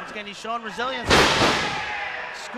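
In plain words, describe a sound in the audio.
A body slams hard onto a wrestling ring mat with a loud thud.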